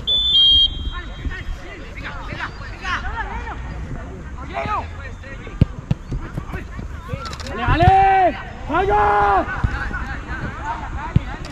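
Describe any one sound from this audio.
Young men shout to each other across an open field, some distance away.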